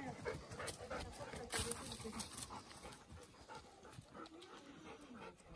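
Dogs pant heavily close by.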